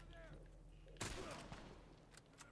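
A heavy blow lands with a sharp thud.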